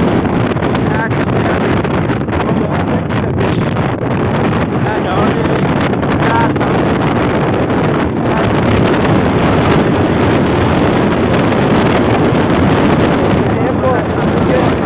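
A motorbike engine rumbles steadily while riding.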